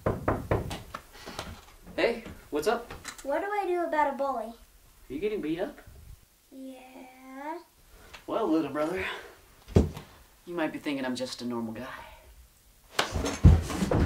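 Two teenage boys talk back and forth with animation, close by.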